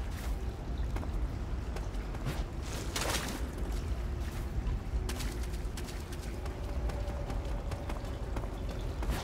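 Footsteps splash through shallow water in an echoing tunnel.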